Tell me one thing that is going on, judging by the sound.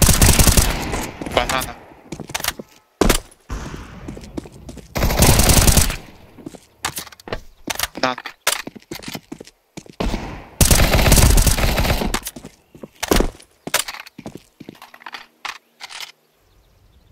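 A rifle fires in rapid bursts of sharp shots.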